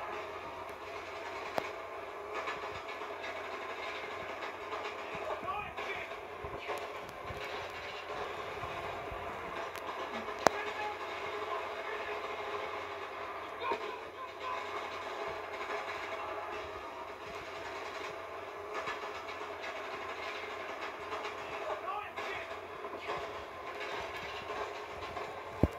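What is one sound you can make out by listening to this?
Gunfire from a video game plays through a television speaker.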